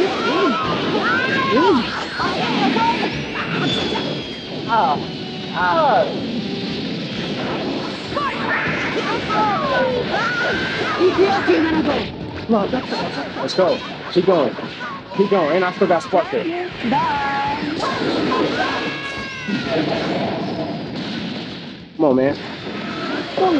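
Game fighters yell and shout during a fight.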